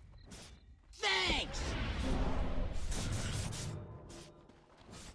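Spell effects burst and crackle in a fight.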